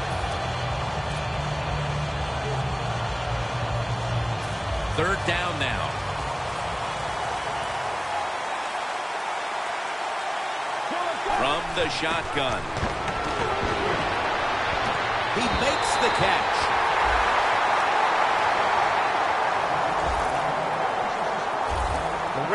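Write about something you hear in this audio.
A stadium crowd roars steadily, swelling louder near the end.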